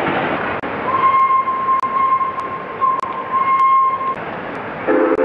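A train whistle sounds in short bursts.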